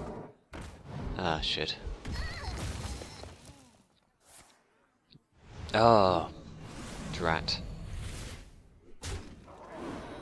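Game sound effects clash and chime as cards are played.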